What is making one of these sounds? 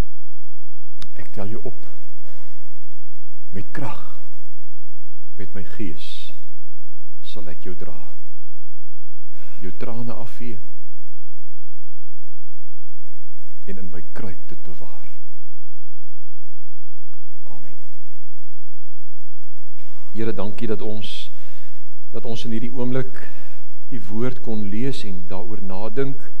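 A middle-aged man speaks calmly through a microphone, in short phrases with pauses.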